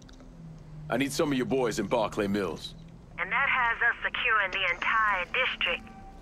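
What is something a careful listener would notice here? A man speaks on a phone.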